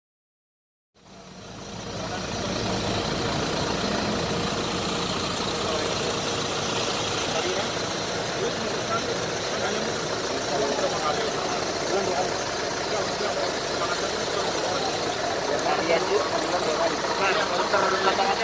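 A man speaks firmly to a small group outdoors.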